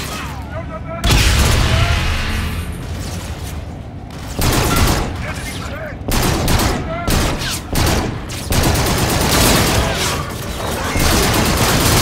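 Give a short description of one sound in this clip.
A gun fires in loud, rapid bursts, with pauses between them.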